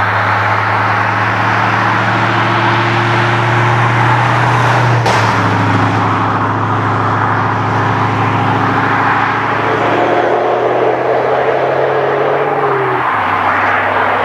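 A vehicle approaches along a road and drives past close by.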